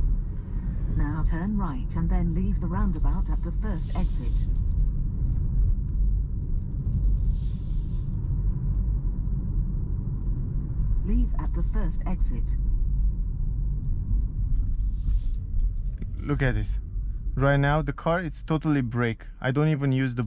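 Tyres roll over a road with a steady low rumble inside a moving car.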